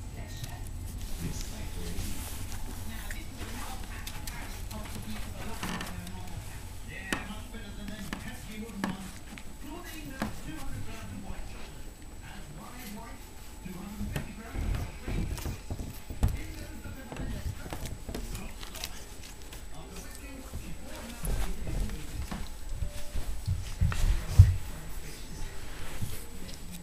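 A small animal scrabbles and moves about on a floor and rug.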